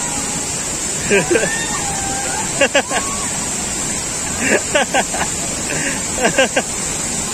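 A young man shouts and laughs with excitement close by.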